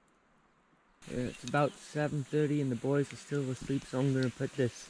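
Meat sizzles in a pan.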